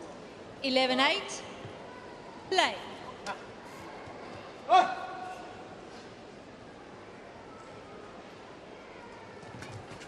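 Rackets strike a shuttlecock in an echoing hall.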